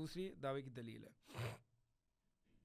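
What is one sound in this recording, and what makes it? A man speaks calmly and closely into a microphone.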